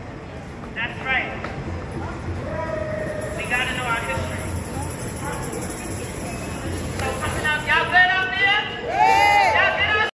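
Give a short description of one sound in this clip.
Men and women in a crowd shout and cheer.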